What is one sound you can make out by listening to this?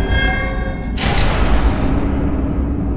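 A portal gun fires with a sharp electric whoosh.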